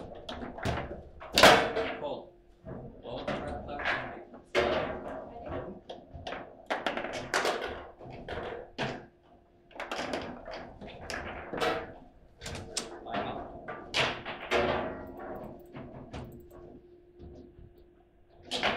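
A foosball ball knocks sharply against the players and the table walls.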